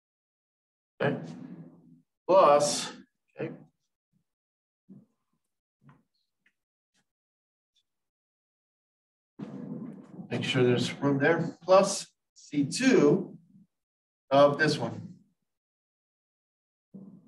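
A man explains calmly, close by, pausing now and then.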